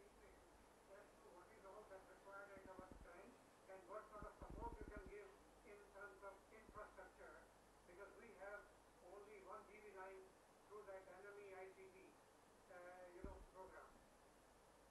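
An elderly man speaks calmly over an online call, faint and thin.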